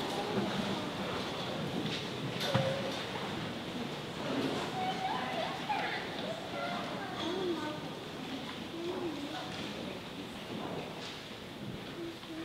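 A middle-aged man speaks calmly at a distance, his voice echoing.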